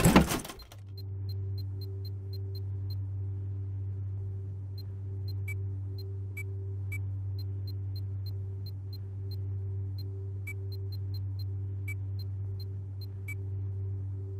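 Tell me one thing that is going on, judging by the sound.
Short soft ticks sound as a game menu is scrolled through.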